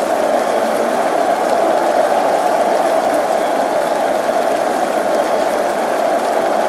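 A large crowd roars and cheers steadily in a stadium.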